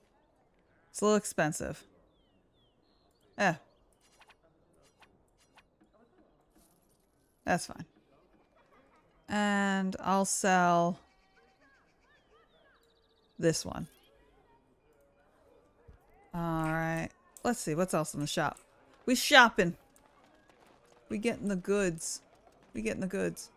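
A young woman talks casually into a microphone, in short bursts.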